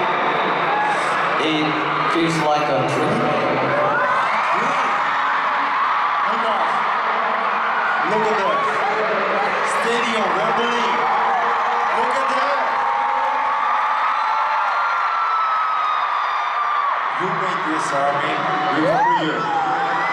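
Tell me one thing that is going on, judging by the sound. A large crowd of young women screams and cheers loudly.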